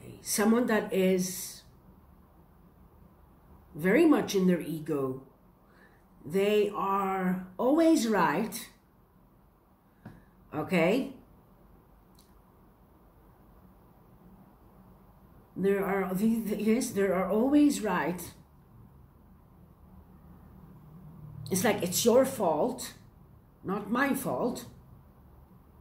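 A woman speaks calmly and expressively close to a microphone, in short phrases with pauses.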